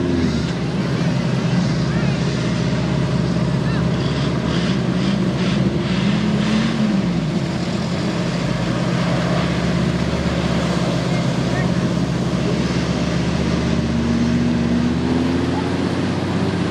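Truck engines rumble and rev loudly as vehicles churn through mud outdoors.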